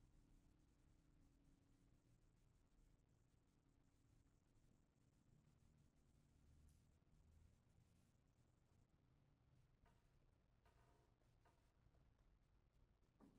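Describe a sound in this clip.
A grand piano plays softly in a large echoing hall.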